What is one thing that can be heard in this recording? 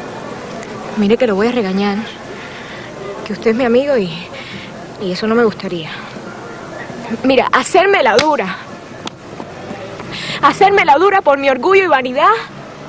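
A young woman speaks emotionally, in a pleading voice.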